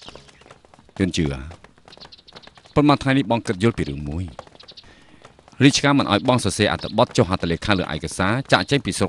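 A man speaks calmly and clearly up close.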